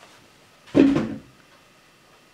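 A metal pan thuds down on a table.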